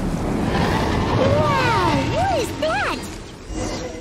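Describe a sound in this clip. A huge creature cries out overhead with a wavering, rising and falling call.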